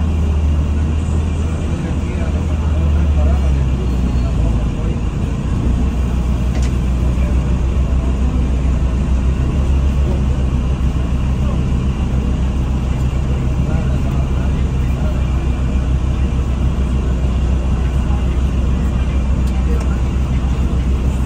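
A bus engine hums low and steady from inside the bus.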